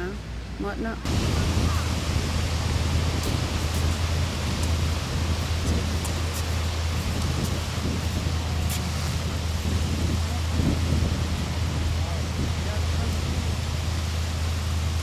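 Strong wind buffets the microphone outdoors.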